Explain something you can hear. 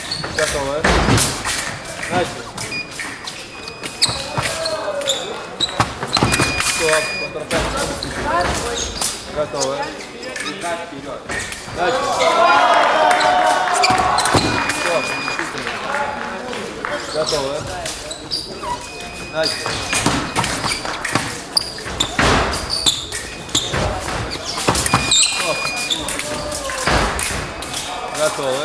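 Fencing blades clash and clatter.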